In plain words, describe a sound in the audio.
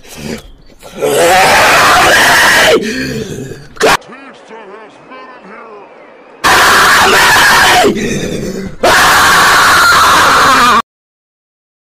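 A young man shouts loudly with excitement into a microphone.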